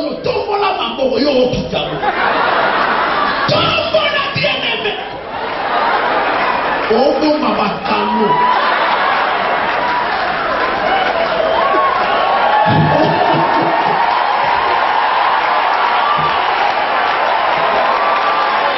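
A man preaches forcefully into a microphone over loudspeakers in a large echoing hall.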